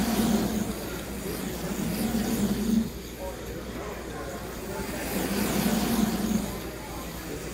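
A crowd of people murmurs in an echoing hall.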